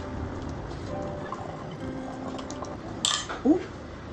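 A sauce pours into a glass bottle.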